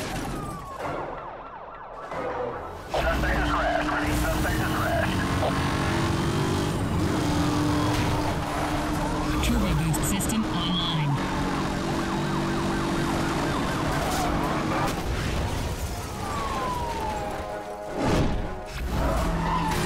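Cars crash and crunch loudly.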